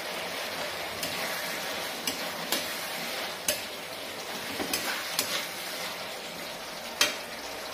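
A spoon scrapes and clinks against a metal pan.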